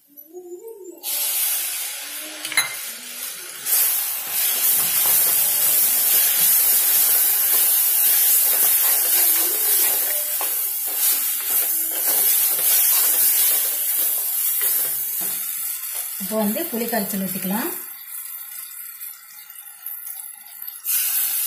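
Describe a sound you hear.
Food sizzles loudly in a hot pot.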